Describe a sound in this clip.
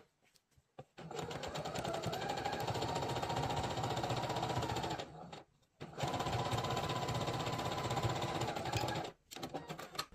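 A sewing machine runs with a fast, steady whir.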